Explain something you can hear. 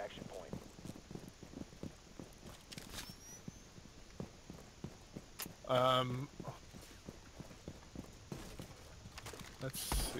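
Footsteps thud quickly and steadily on hard ground.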